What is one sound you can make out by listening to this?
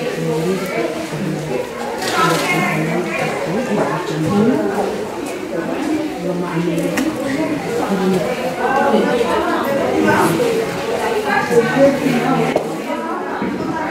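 Dry palm leaves rustle and crackle as they are handled.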